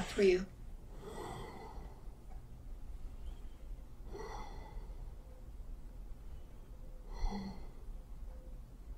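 An elderly woman breathes heavily in slow, deep breaths.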